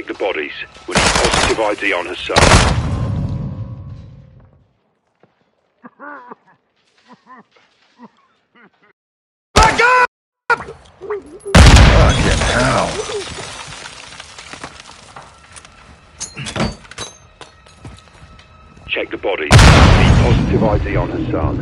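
Automatic gunfire cracks in loud, echoing bursts.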